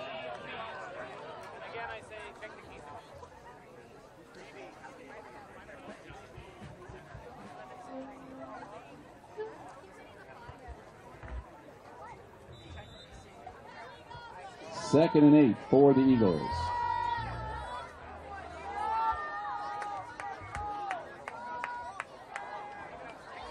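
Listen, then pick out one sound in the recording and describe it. A crowd of spectators talks and calls out outdoors.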